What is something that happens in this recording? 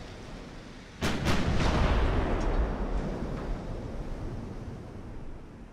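Heavy naval guns fire with a deep booming blast that rumbles away.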